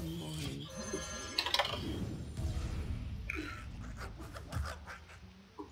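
A magical game spell crackles and whooshes.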